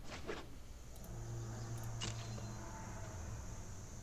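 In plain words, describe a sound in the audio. Game sound effects chime and swish.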